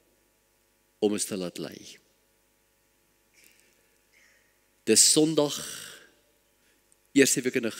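An elderly man speaks calmly and earnestly into a microphone.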